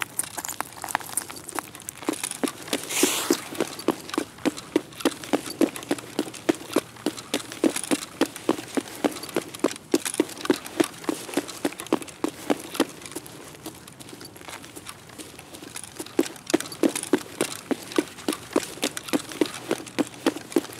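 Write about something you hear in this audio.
Footsteps crunch steadily on paving and scattered debris.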